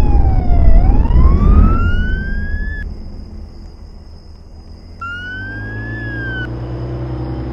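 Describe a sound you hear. A siren wails in short rising and falling sweeps.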